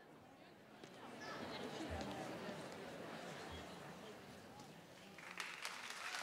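An audience murmurs in a large hall.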